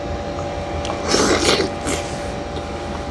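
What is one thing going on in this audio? A man bites into a juicy dragon fruit.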